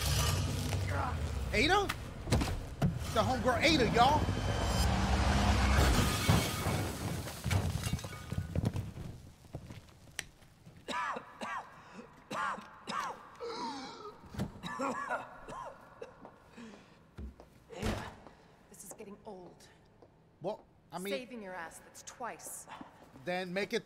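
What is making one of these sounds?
A young man exclaims with animation close to a microphone.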